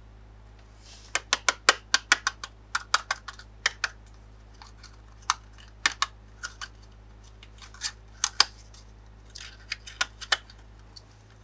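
Cardboard rustles and taps as a small box is handled and opened.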